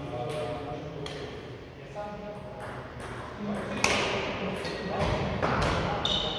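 Shuttlecocks are struck with sharp pops of rackets, echoing in a large hall.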